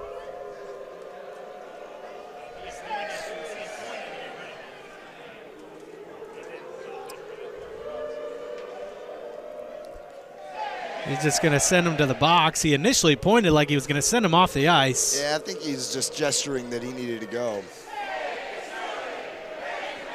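A crowd murmurs and chatters in a large echoing arena.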